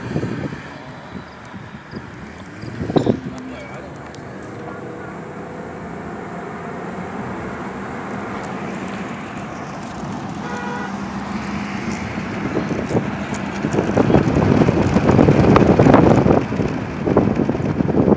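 Tyres rumble on the road, growing louder.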